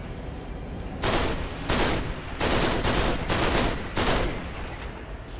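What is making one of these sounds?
An automatic rifle fires in short bursts.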